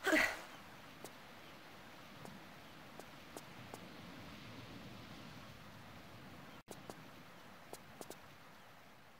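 Bare footsteps tap lightly on rock.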